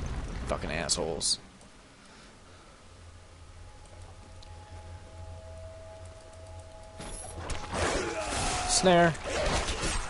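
Weapons strike and slash in a fierce fight.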